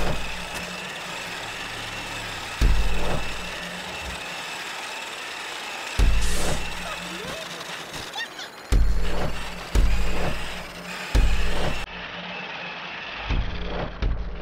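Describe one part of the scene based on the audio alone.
A small toy car engine buzzes steadily.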